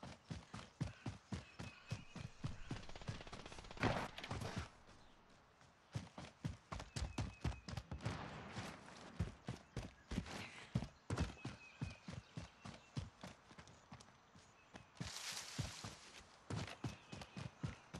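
Footsteps thud quickly and steadily as someone runs over rough ground.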